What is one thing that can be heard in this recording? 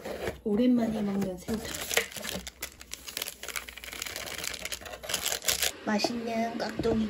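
A paper lid crinkles and rustles.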